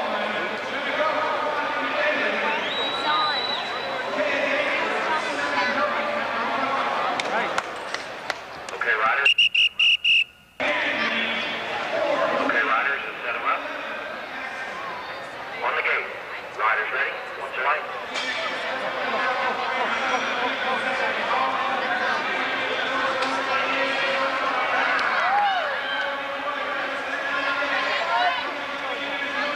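A large crowd cheers and chatters in an echoing hall.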